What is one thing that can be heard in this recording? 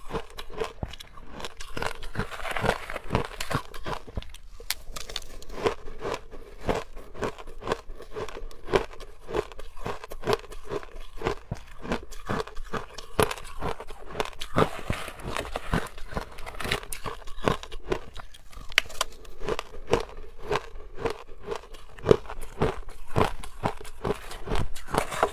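A woman crunches shaved ice close to a microphone.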